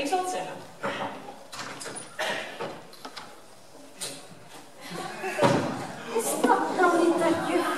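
A woman speaks with animation on a stage in a large hall.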